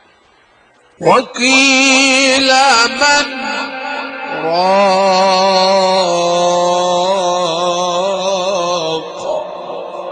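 An elderly man chants loudly through a microphone, holding long wavering notes.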